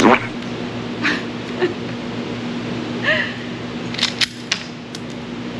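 A woman laughs and talks excitedly.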